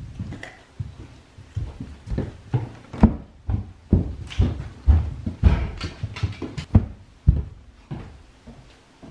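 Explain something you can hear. A dog's claws tap on a hard floor.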